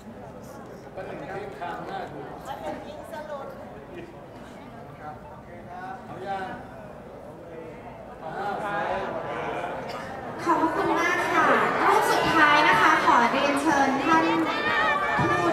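A crowd of young people chatters in a large room.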